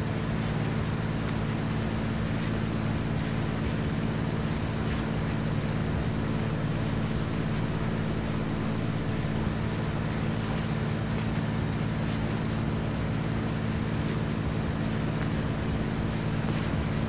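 A ship's engine drones low and steady.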